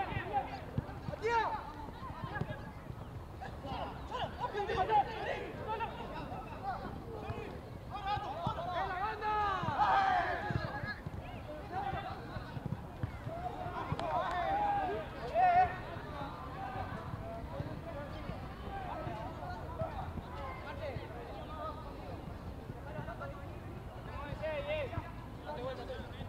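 Men shout to each other across an outdoor football pitch.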